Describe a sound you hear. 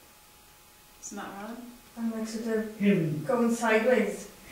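A woman speaks slowly and calmly nearby.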